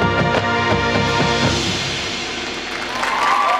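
A marching band plays a loud brass chord outdoors, then stops.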